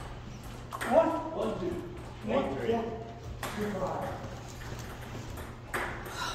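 A table tennis ball clicks against paddles and a table.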